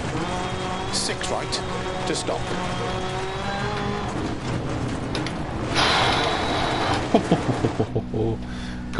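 Gravel sprays and rattles under the car's tyres.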